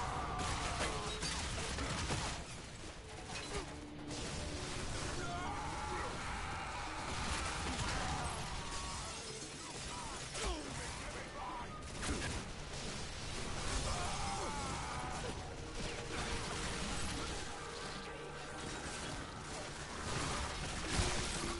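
Gunfire from a video game rattles in bursts.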